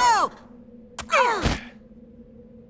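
Bodies thud heavily onto a hard floor.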